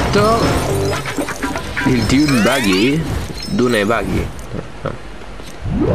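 A bright chime rings out as a reward is unlocked.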